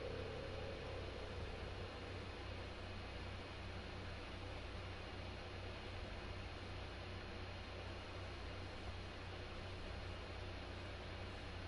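Wind rushes steadily past during a fast glide through the air.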